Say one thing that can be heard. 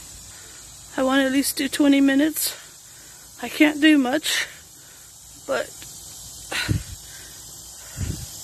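A middle-aged woman speaks close to the microphone.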